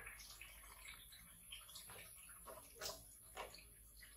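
A towel rubs against a wet monkey's fur.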